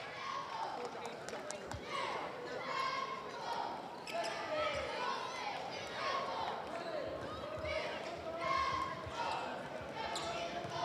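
A crowd murmurs in a large echoing gym.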